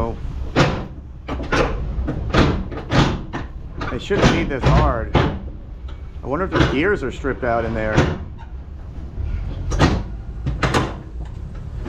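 Metal bangs and clanks sharply close by.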